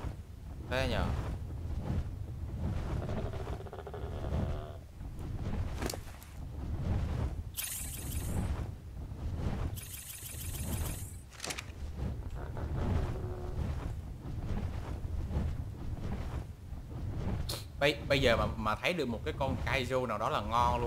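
A large winged creature flaps its wings in heavy, steady beats.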